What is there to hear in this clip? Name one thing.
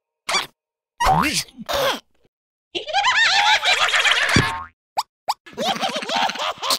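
Cartoon creatures chatter in high, squeaky voices.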